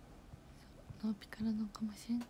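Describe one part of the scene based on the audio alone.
A young woman speaks softly close to the microphone.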